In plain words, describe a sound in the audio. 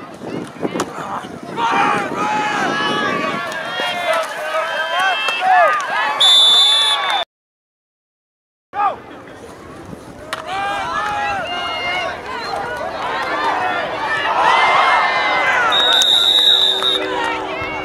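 A crowd cheers and shouts outdoors.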